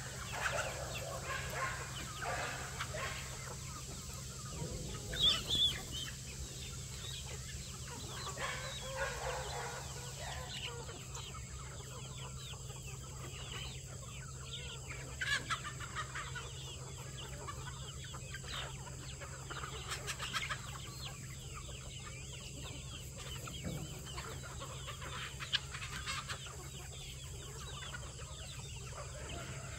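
A large flock of chickens clucks and chatters nearby.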